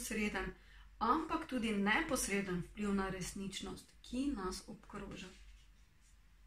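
A young woman reads aloud calmly, close to the microphone.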